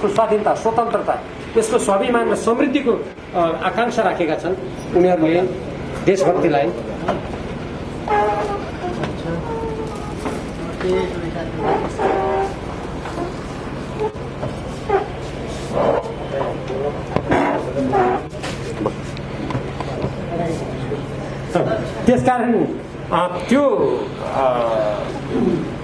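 A middle-aged man speaks steadily through a microphone in an echoing room.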